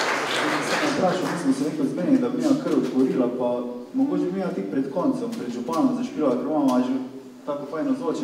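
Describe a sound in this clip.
An accordion plays.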